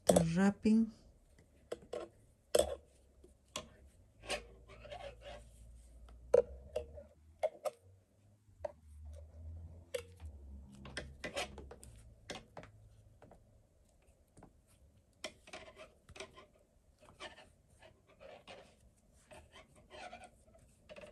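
Small clicks and taps sound close by as the flower is handled.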